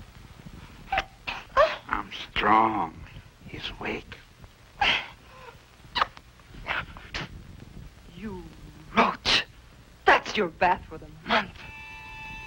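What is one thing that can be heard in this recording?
A man speaks in a low, menacing voice close by.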